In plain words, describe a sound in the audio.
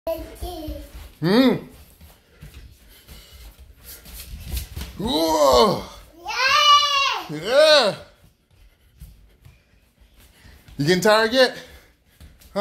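A small child squeals and shouts playfully nearby.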